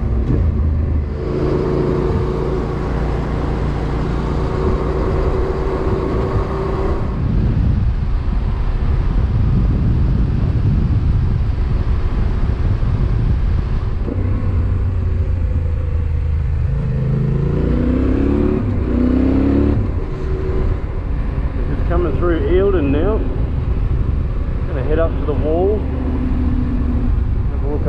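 A motorcycle engine drones steadily while riding.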